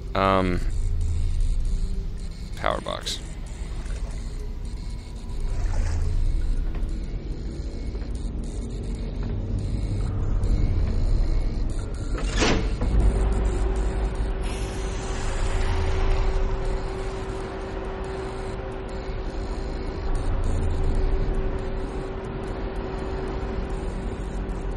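A deep, steady rumbling drone fills a large echoing space.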